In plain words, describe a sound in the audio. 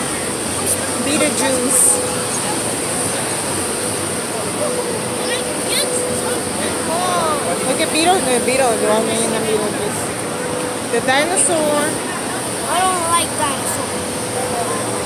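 Men and women nearby talk and call out with animation.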